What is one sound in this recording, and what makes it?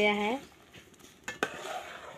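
A ladle scrapes against a metal pot.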